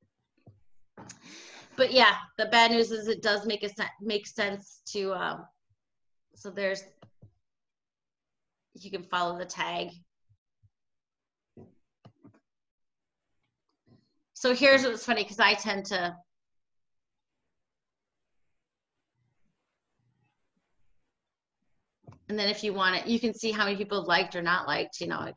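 A woman speaks calmly over an online call, in short bursts with pauses.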